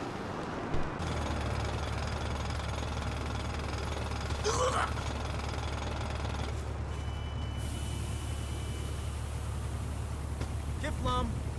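A motorbike engine idles with a low, steady rumble.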